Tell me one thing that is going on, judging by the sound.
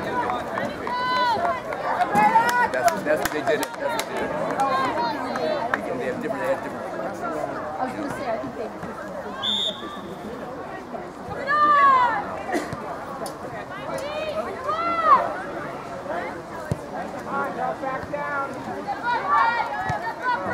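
Young women shout to each other across a field.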